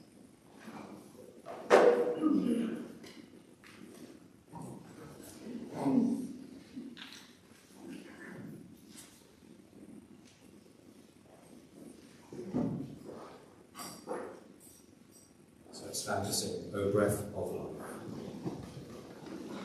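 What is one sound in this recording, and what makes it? Men and women murmur and chat softly in a large echoing hall.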